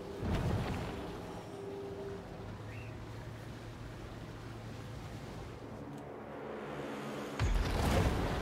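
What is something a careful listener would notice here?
Water splashes and rushes.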